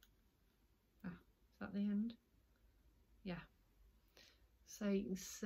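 A woman talks calmly close by, in short bursts.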